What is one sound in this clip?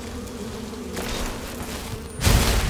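A burst of flame roars close by.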